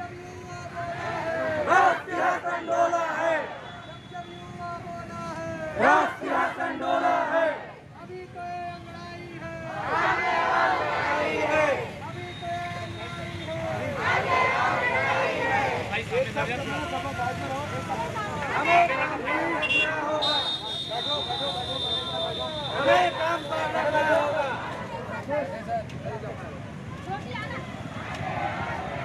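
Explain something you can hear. A crowd of young men chants slogans loudly outdoors.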